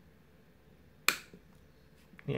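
Pliers snip through a cable with a sharp click.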